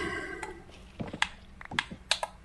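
A block cracks as it is broken, with short repeated knocks.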